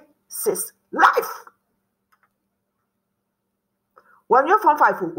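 A woman speaks with animation close to a microphone.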